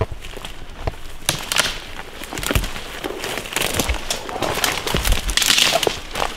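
Branches and leaves brush and rustle against clothing.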